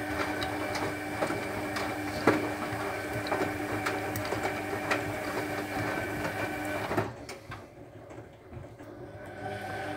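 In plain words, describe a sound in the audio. Small objects knock and tap against a washing machine drum.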